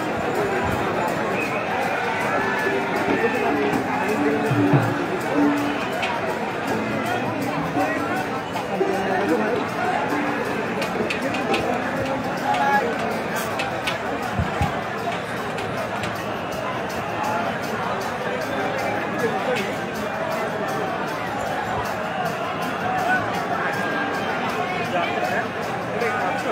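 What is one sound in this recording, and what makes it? A large crowd chatters and cheers loudly all around.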